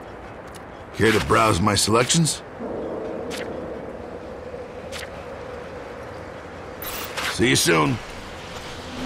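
A man speaks in a gruff, lively voice close by.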